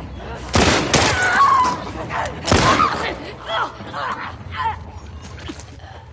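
A man shouts in pain from across the room.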